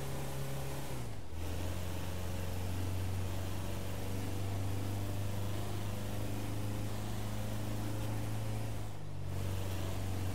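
A van engine's pitch dips as it shifts gear.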